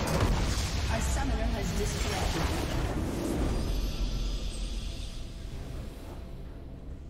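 A huge explosion booms and crackles, then fades away.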